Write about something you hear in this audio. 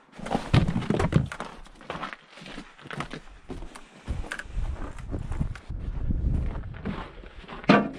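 Footsteps crunch on icy snow.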